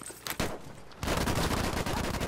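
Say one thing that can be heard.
A submachine gun fires a rapid burst close by.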